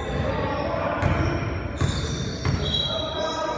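A basketball thumps on the floor with an echo.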